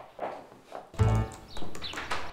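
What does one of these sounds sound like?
A door opens with a thump.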